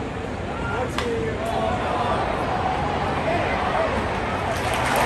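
A crowd cheers louder near the end.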